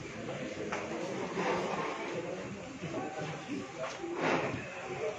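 A small crowd of men talks quietly nearby.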